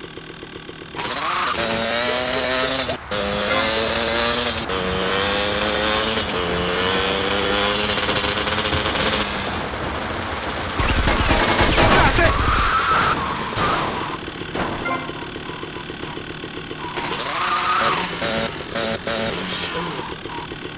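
A motorbike engine revs and whines, rising and falling in pitch.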